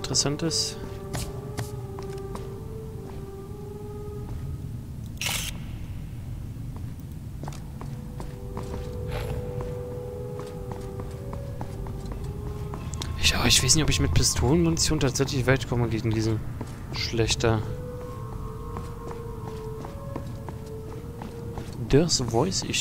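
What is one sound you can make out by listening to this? Footsteps scuff along a hard floor.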